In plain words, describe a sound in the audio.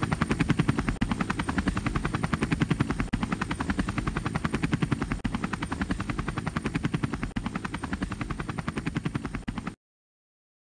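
A helicopter's rotor thumps in a rapid beat.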